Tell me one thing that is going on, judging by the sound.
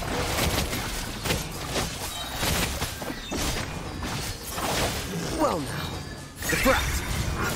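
Magical blasts and impacts crash and whoosh repeatedly.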